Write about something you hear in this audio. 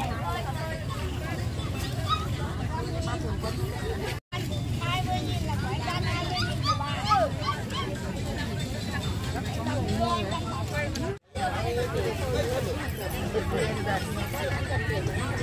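Women chat and bargain animatedly nearby.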